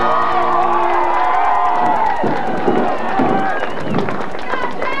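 A crowd cheers and applauds outdoors.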